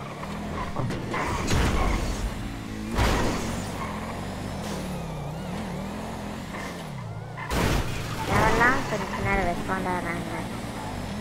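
A car engine roars steadily at high speed, its pitch rising and falling.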